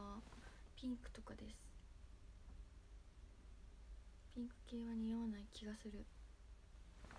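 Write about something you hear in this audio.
A young woman speaks softly in short bursts, close to a phone microphone.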